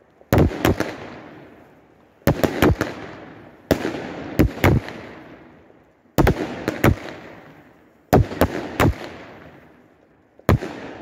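Fireworks burst with loud bangs in quick clusters, their echoes rolling away outdoors.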